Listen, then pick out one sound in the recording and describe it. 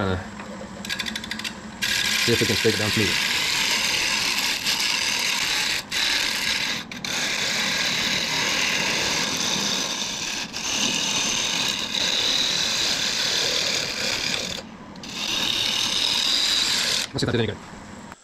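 A lathe's chisel shears loudly at spinning wood in a steady, scraping hiss.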